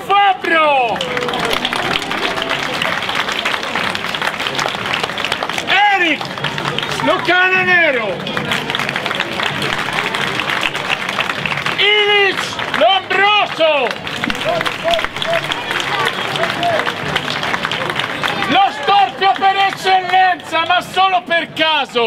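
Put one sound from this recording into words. A man shouts loud commands nearby.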